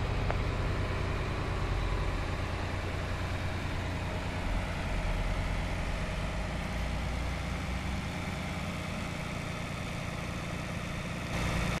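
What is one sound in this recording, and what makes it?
A metal trailer rattles as it rolls over paving.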